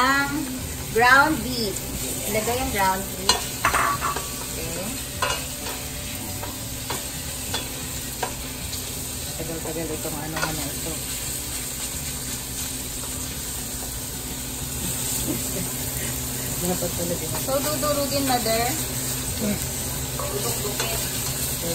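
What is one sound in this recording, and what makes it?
A spatula scrapes and clatters against a metal pot.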